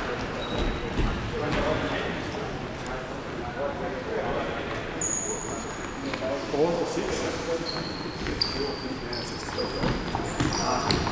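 Young men shout and call out to each other in an echoing hall.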